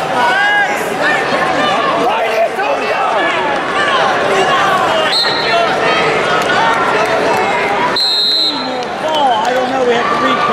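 A large crowd shouts and cheers in an echoing arena.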